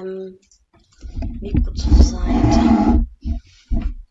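Cardboard rustles as a box is handled.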